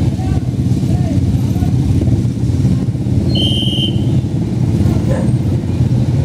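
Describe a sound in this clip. A motorcycle engine idles and rumbles nearby.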